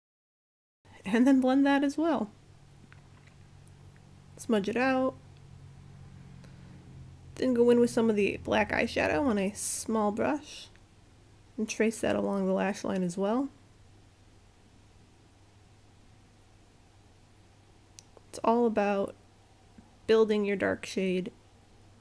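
A young woman speaks calmly and close by, in short phrases with pauses.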